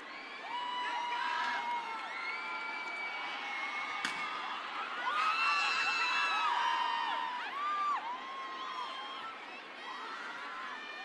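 A large crowd cheers and sings along.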